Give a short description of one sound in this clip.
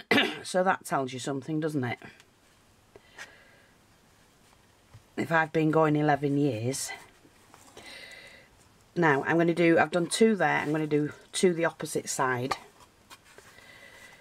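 Fabric rustles softly as it is pressed and folded down.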